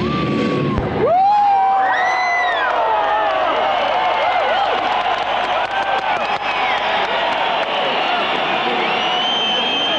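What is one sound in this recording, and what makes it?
An electric guitar wails with bending notes.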